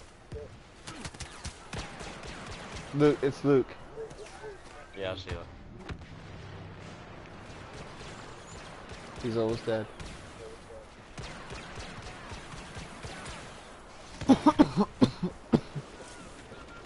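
Laser guns fire in quick bursts of zapping shots.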